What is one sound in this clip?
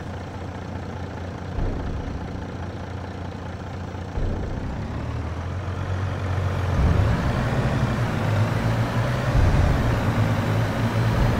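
A truck engine idles with a low, steady rumble that grows louder.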